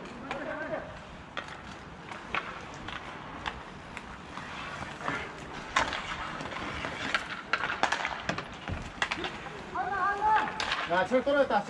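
Young men shout to each other across an open rink.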